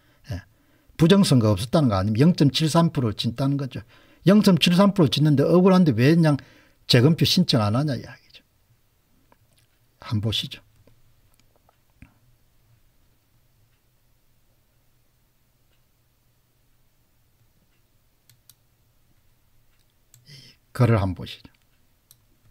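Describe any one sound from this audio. An older man talks calmly and close to a microphone, in short bursts with pauses.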